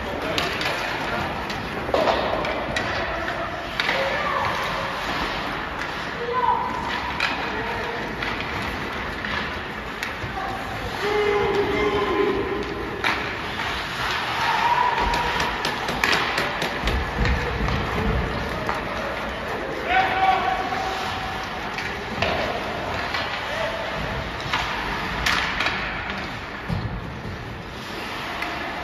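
Hockey sticks click and slap against a puck.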